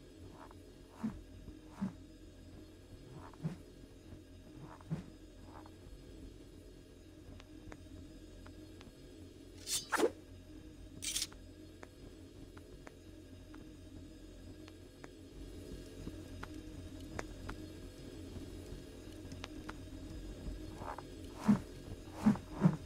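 Hands thud softly as they grip and shift along a wooden bar.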